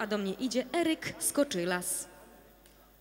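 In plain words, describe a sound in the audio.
A young woman sings through a microphone and loudspeakers in a large echoing hall.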